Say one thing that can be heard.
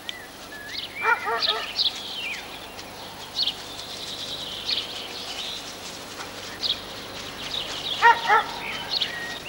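Dogs yelp and whine nearby.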